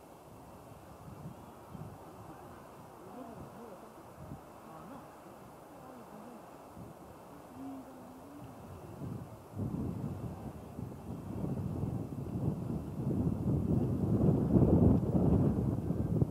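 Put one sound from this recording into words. A brass band plays outdoors.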